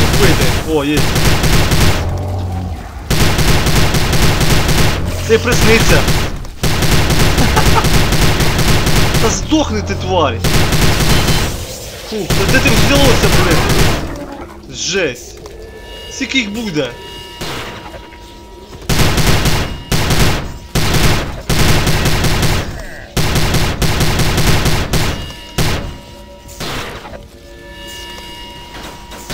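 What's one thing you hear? A heavy gun fires rapid, loud bursts of shots.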